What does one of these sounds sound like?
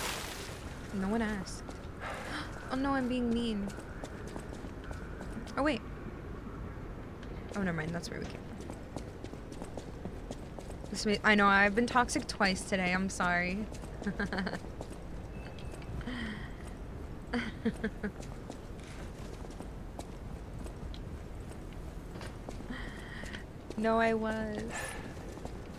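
A young woman talks casually into a microphone, close by.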